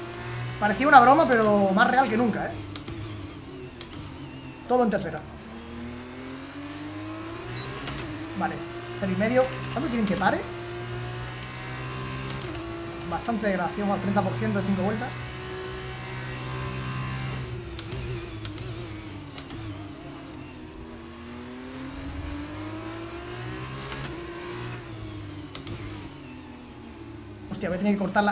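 A racing car engine whines, rising and falling in pitch as it shifts gears.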